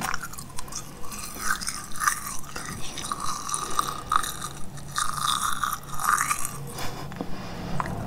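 A young woman nibbles and crunches a small snack close to a microphone.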